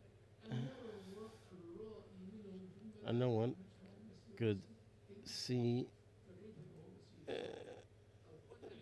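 An elderly man speaks with animation into a close headset microphone.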